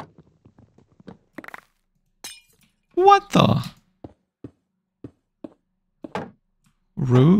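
Stone blocks crunch and break with short, quick taps.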